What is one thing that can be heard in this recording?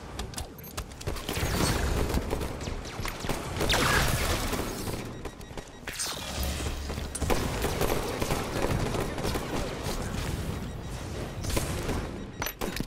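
An energy sword hums and slashes with a sharp electric swoosh.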